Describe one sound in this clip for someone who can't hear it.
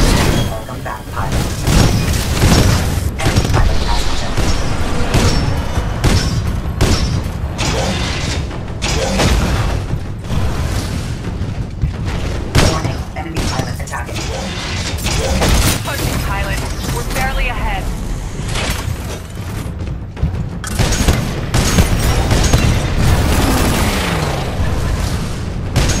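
Explosions thud and rumble.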